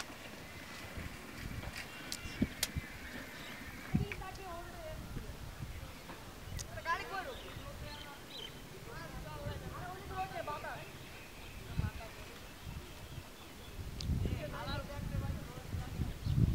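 A woman talks nearby, outdoors.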